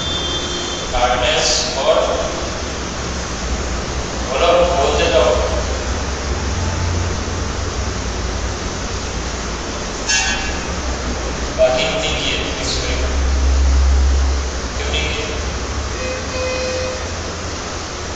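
A man speaks calmly through a clip-on microphone, in short bursts with pauses.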